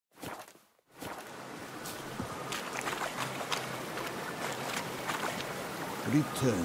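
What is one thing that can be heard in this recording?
Water splashes as a figure wades through a shallow lake.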